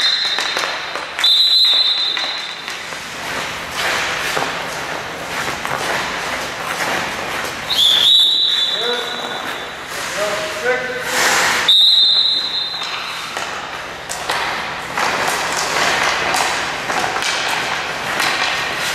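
Skate blades scrape and carve across ice.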